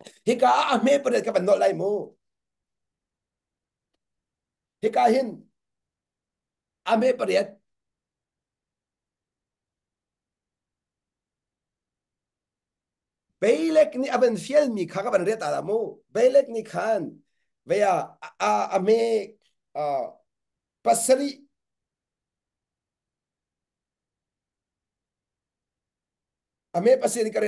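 A man speaks with animation into a close microphone, in bursts with pauses.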